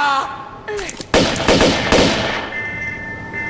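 Pistol shots ring out in quick bursts.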